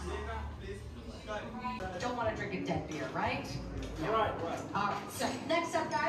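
People chatter in the background.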